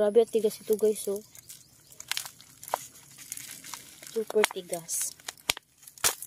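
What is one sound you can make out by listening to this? A plastic pot crinkles and taps as it is handled close by.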